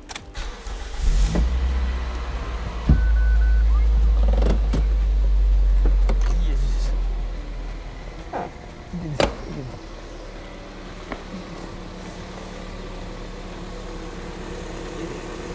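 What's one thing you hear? A car engine starts and idles with a low, steady rumble.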